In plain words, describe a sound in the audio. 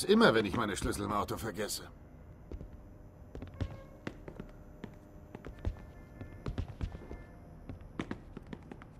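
Footsteps thud on stairs and a hard floor.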